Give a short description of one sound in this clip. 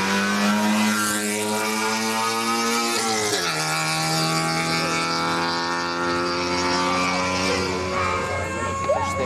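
A rally car engine roars at high revs as the car speeds past and shifts gear.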